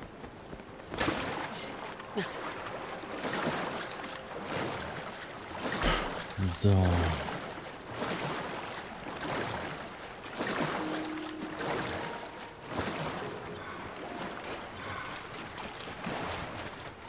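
Water splashes and sloshes as a swimmer paddles.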